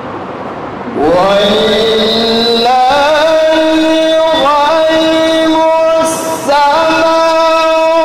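A young man chants melodiously into a microphone, heard through loudspeakers.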